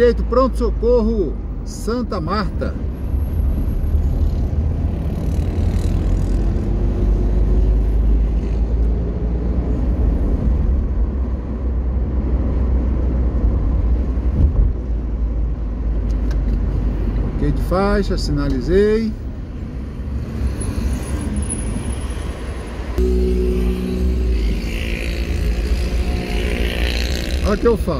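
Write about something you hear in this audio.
A car drives on an asphalt road, its engine and tyres rumbling low as heard from inside.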